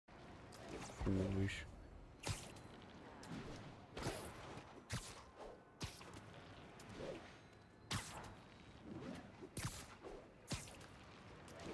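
Web lines shoot out with sharp, snapping thwips, again and again.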